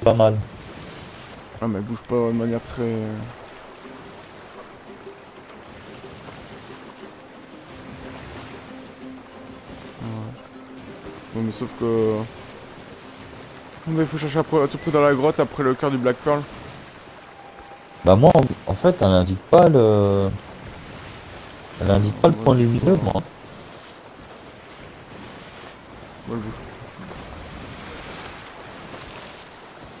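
Ocean waves wash against a wooden ship.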